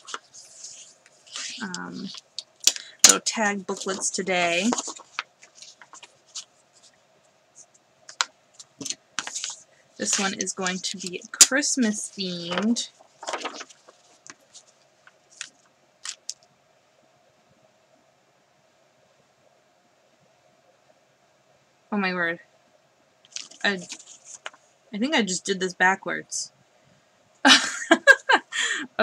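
Wrapping paper rustles and crinkles as it is folded.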